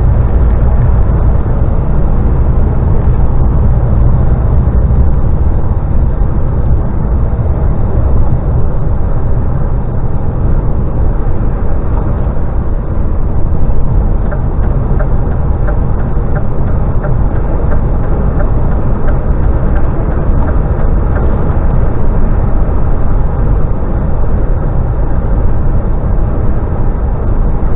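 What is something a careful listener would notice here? A vehicle engine rumbles steadily while driving at speed.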